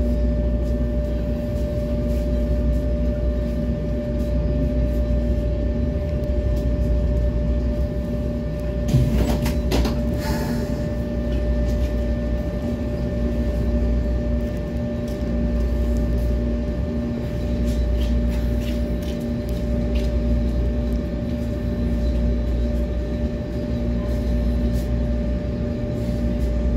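A subway train rumbles loudly past on the rails, then slows to a stop.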